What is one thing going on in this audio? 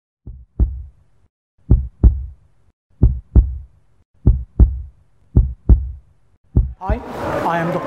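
A heart beats in a steady, deep thumping rhythm.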